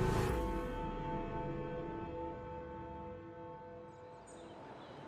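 A large clock bell tolls and slowly rings out.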